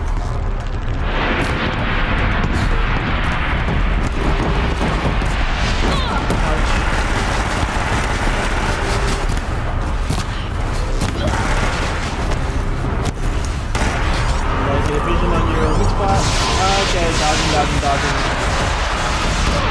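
Laser fire and explosions boom loudly.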